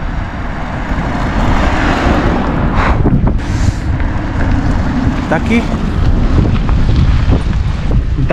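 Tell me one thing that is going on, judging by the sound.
A car drives past on a rough road.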